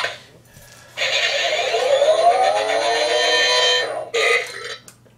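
A toy fighting game plays loud electronic battle sounds through a small speaker.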